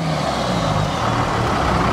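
Tyres spin and crunch on loose sand.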